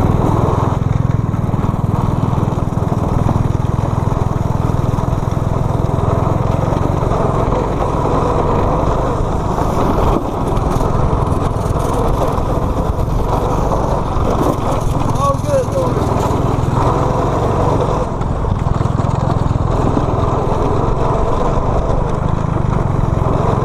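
Small go-kart engines buzz and roar loudly close by.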